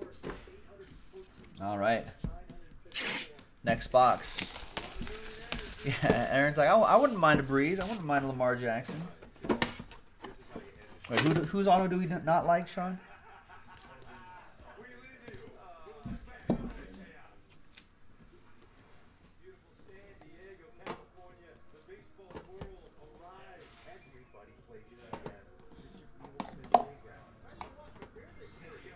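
Cardboard boxes and tins knock and scrape against each other as hands handle them.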